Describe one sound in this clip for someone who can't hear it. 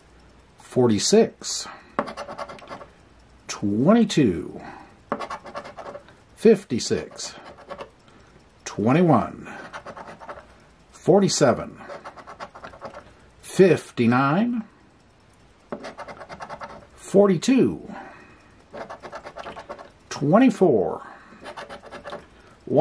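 A coin scratches the surface of a card in short, rasping strokes.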